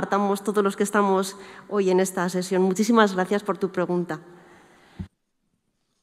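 A woman speaks into a microphone over loudspeakers in a large hall.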